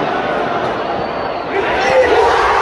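A large stadium crowd murmurs in the open air.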